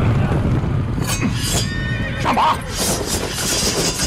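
Swords clash with ringing metallic strikes.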